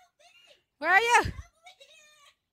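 A girl squeals loudly into a headset microphone.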